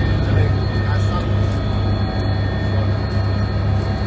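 A man talks over the engine noise.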